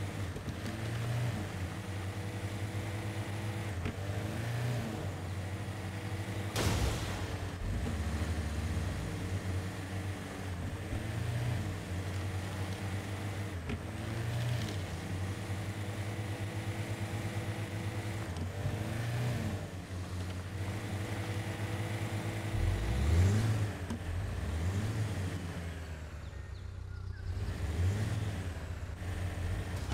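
Tyres crunch over rocks and dirt.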